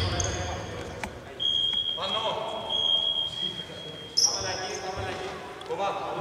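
Basketball sneakers squeak on a hardwood court.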